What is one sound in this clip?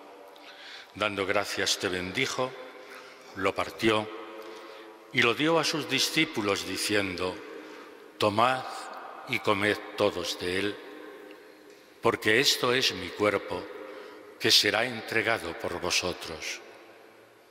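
An elderly man speaks slowly and solemnly through a microphone in a large echoing church.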